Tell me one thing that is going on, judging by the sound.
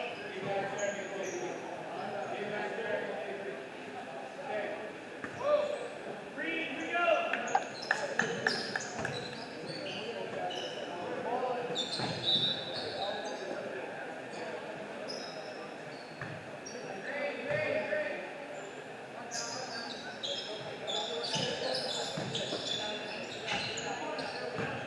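Teenage boys call out and shout to each other.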